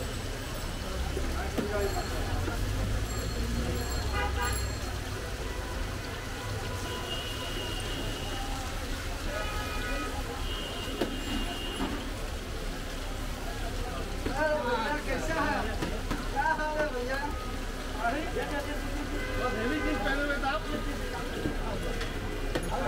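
Food sizzles steadily in hot oil on a large pan.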